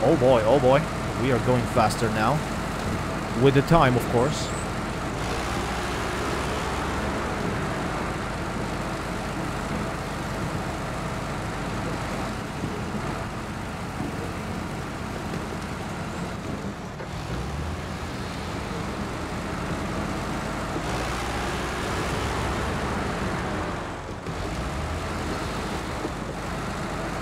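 A heavy truck engine rumbles steadily.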